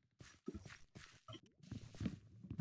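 An axe chops at wood with dull knocks.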